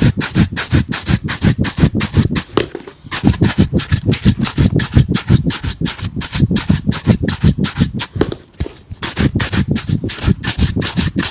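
A brush scrubs rapidly back and forth over a shoe.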